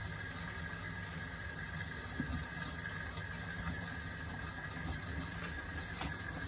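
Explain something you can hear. A washing machine drum turns with a steady low hum.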